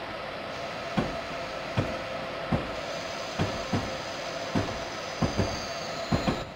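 Train wheels thump over rail joints.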